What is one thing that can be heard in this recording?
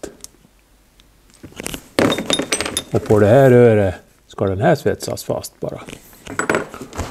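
Small metal parts click and clink together.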